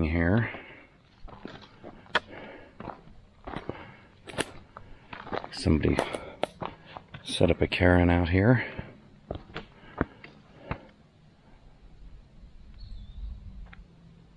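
Footsteps crunch and scrape on rock and dry leaves.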